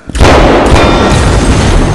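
An explosion bursts with a roar.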